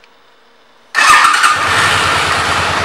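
A motorcycle engine starts up and runs with a loud, rough rumble close by.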